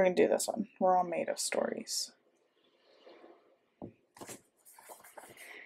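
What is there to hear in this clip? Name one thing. A sticker is peeled and pressed onto paper with a soft rustle.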